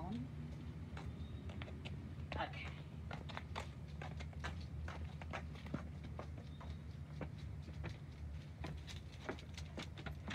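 Footsteps tap along a path and across wooden boards.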